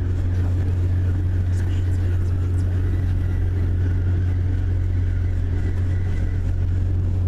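Train brakes squeal softly as the train slows into a station.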